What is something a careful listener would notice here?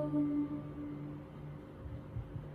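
A young woman sings into a microphone and her singing trails off.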